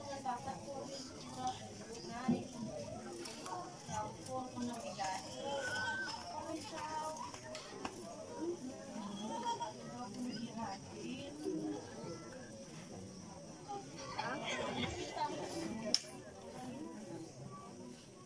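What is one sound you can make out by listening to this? A crowd of men and women chatter outdoors at a distance.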